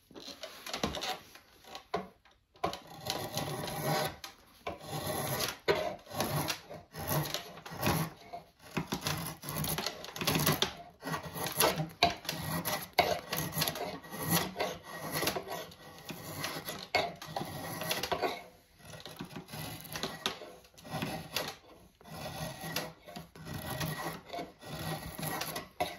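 A drawknife shaves curls off wood in repeated rasping strokes.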